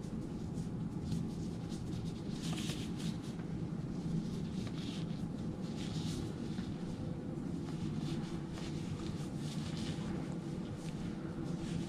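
A plastic gown rustles as its sleeves are pulled and smoothed.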